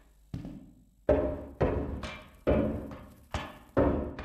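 Footsteps clang up metal stairs.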